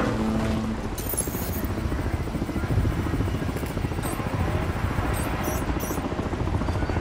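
Electronic static crackles and warbles in high bursts.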